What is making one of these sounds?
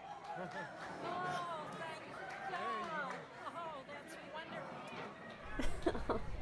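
A woman cries emotionally close by.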